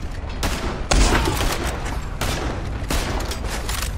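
A rifle fires sharp, loud shots that echo.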